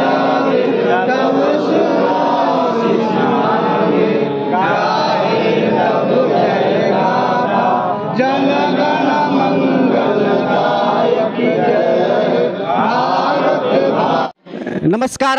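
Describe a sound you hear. A crowd of men murmurs outdoors.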